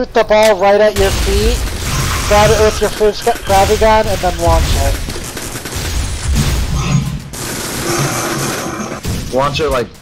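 An energy weapon fires with a loud crackling blast.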